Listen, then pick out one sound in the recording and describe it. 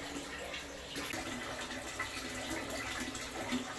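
Water splashes in a tub.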